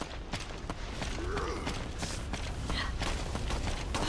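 Footsteps run over dirt.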